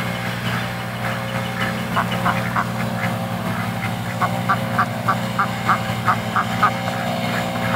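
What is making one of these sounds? Ducks quack in short repeated bursts close by.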